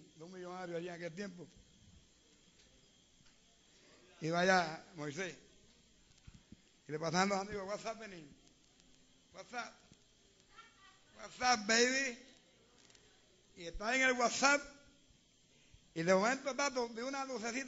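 An elderly man preaches with animation in short bursts, heard through a microphone.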